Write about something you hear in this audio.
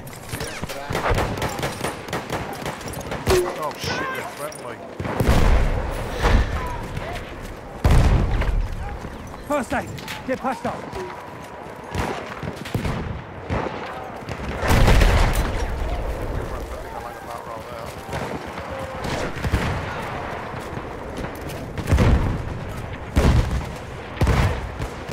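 Gunfire cracks and booms in short bursts.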